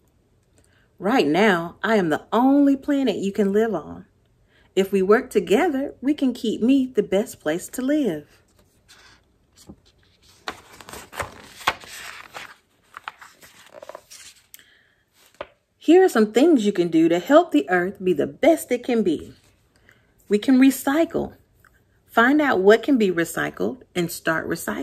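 A young woman reads aloud close by with animation.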